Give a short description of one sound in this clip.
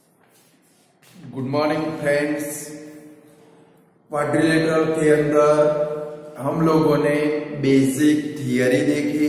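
A middle-aged man speaks clearly and steadily through a clip-on microphone, close by.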